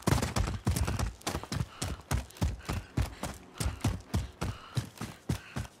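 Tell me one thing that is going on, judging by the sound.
Quick, heavy footsteps thud on the ground.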